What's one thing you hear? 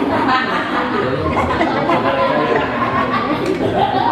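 A middle-aged man laughs loudly nearby.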